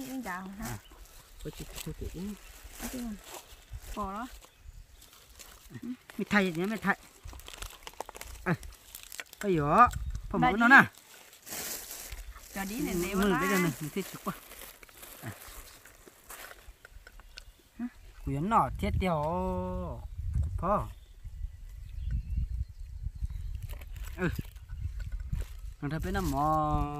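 A woman and a young man talk calmly close by, outdoors.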